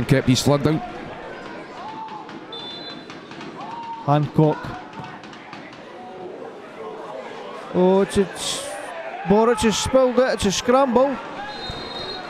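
A crowd murmurs in an open-air stadium.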